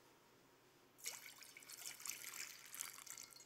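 Water pours from a pitcher and splashes into a bowl.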